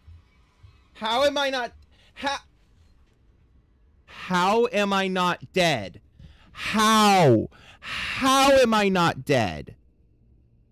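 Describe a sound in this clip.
A young man exclaims loudly and with animation into a close microphone.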